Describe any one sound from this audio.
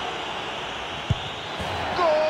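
A football is kicked with a sharp thump.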